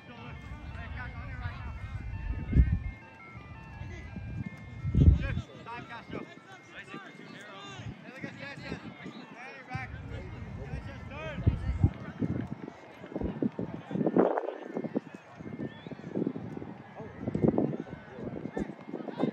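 Players shout to each other across an open field outdoors.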